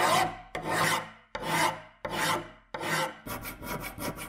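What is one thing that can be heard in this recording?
A file rasps across metal in long, even strokes.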